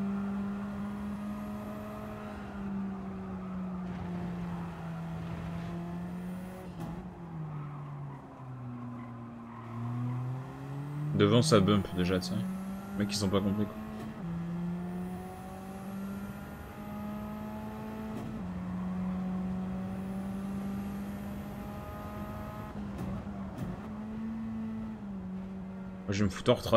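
A race car engine whines steadily and rises and falls in pitch with the gears.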